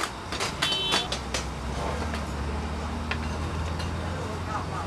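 A gas burner roars steadily.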